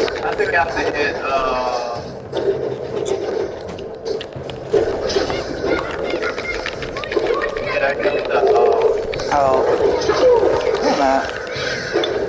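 A magic blast crackles and whooshes.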